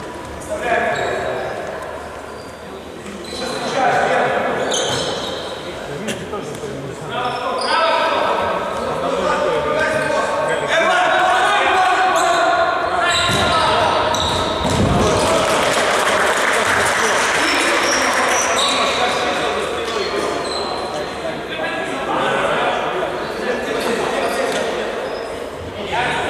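Men shout and call out across an echoing sports hall.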